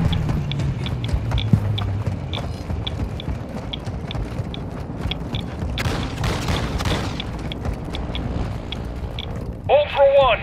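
Footsteps crunch quickly over dry gravel.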